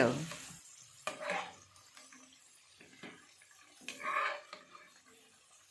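A metal ladle scrapes and clinks against a pan.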